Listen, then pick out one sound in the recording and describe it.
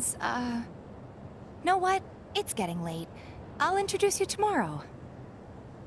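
A young woman speaks calmly and hesitantly, close by.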